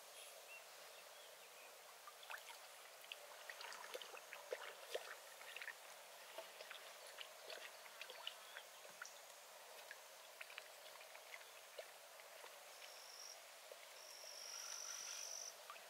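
A paddle splashes and drips in calm water.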